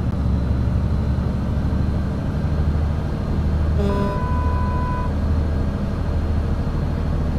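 A truck engine drones steadily while driving on a road.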